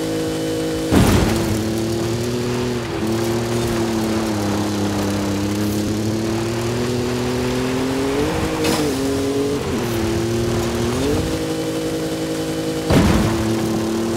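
A car lands hard with a heavy thump after a jump.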